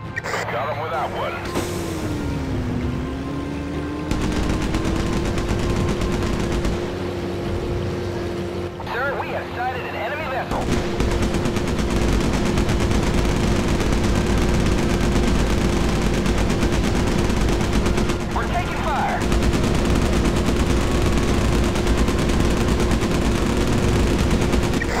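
A motorboat engine drones steadily.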